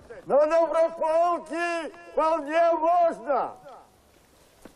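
A man shouts through a megaphone.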